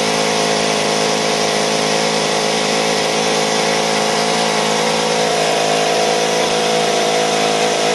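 A miniature V8 engine runs with a high, fast buzz.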